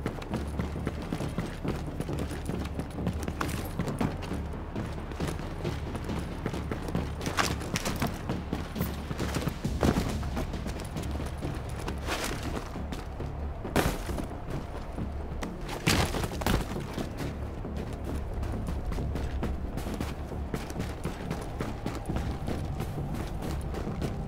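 Footsteps thud quickly on hard floors and metal stairs.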